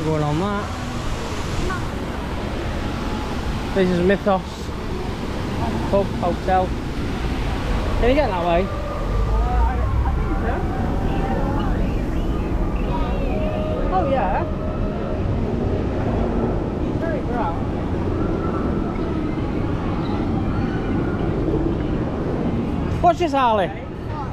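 Men and women chatter in the distance outdoors.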